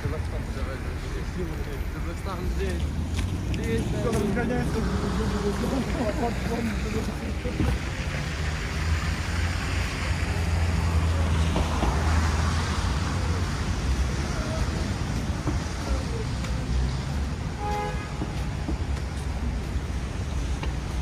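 Footsteps crunch on icy pavement.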